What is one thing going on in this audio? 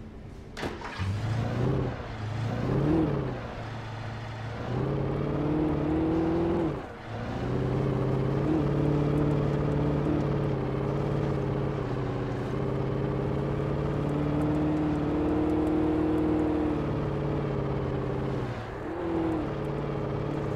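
A truck engine starts, then rumbles and revs steadily as the truck drives along a bumpy dirt road.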